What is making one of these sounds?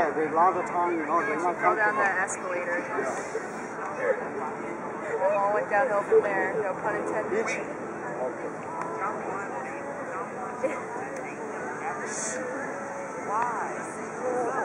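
Young women chat and laugh nearby outdoors.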